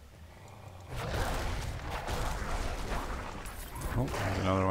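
Weapons clash and spells burst in a fierce fight.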